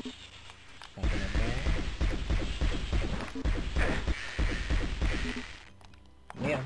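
Game weapons fire with sharp blasts.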